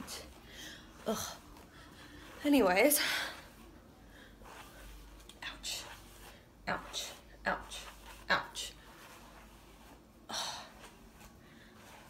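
A brush swishes through hair.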